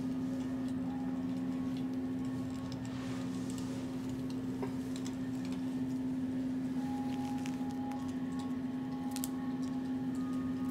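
Hands rub a towel over a bare back with a soft rustle.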